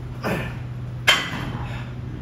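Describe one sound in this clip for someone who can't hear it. A weight stack clanks on a cable machine.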